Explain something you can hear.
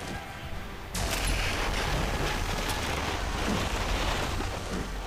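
A huge explosion roars and rumbles.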